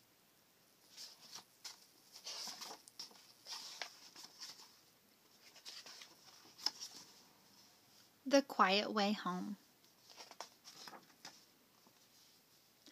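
Book pages rustle softly as they are turned.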